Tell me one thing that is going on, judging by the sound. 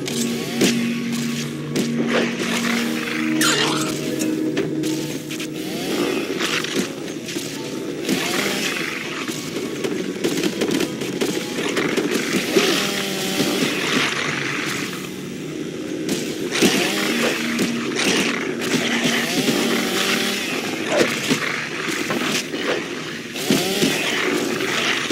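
Creatures snarl and growl.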